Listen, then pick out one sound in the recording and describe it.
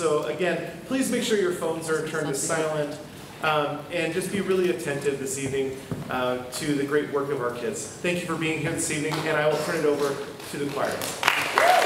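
A man sings into a microphone in an echoing hall.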